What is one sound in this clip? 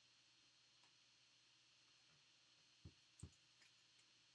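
A hard plastic case clicks and taps as hands handle it.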